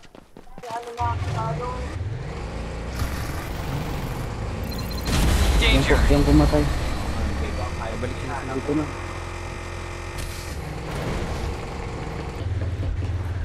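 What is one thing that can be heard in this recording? A car engine roars and revs while driving over rough ground.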